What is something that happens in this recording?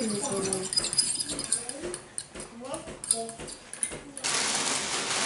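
A spoon clinks against a bowl as it stirs.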